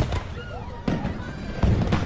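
Fireworks burst and boom overhead.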